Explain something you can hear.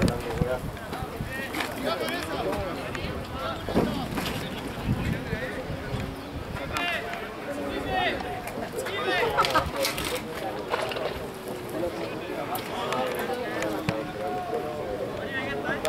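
Young men shout and call to each other outdoors, some distance away.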